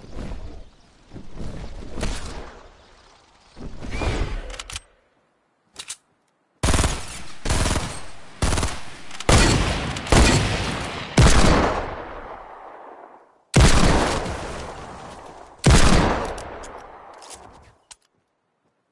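Wooden panels snap into place with loud clattering thuds.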